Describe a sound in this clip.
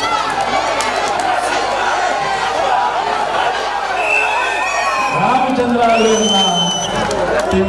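A crowd of men and women cheers and shouts outdoors.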